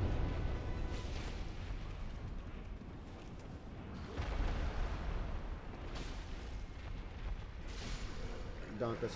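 A heavy blade swings through the air with a whoosh.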